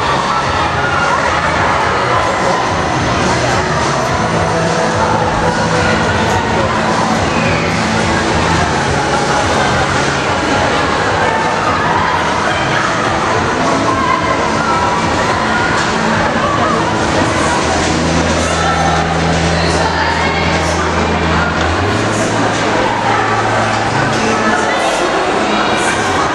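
A crowd chatters loudly in a large echoing hall.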